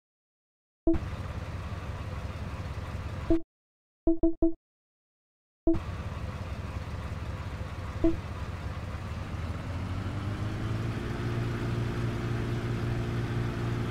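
A tractor engine rumbles steadily and revs higher as it speeds up.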